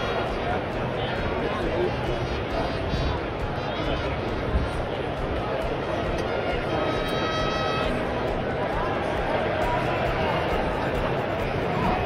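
A large stadium crowd murmurs and chatters steadily, heard from within the stands outdoors.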